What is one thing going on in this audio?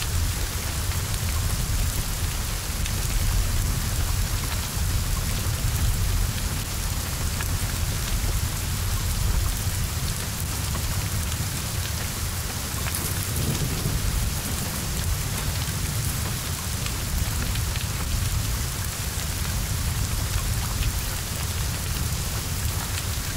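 Flames roar and crackle from a burning car.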